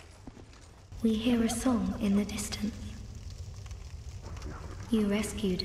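A woman speaks softly and slowly.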